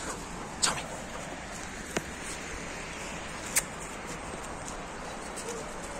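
A dog runs through grass with light rustling footsteps.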